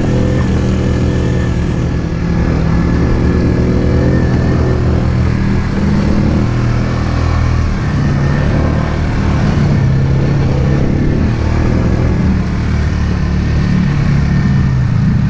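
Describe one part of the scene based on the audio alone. A quad bike engine rumbles steadily up close.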